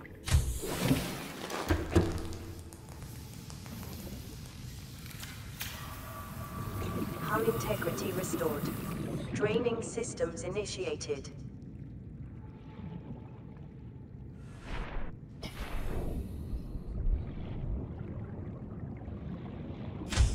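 Water gushes and churns around a flooded room.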